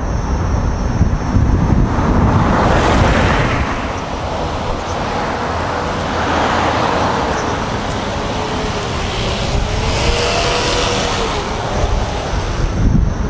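Wind rumbles loudly against a microphone while riding outdoors.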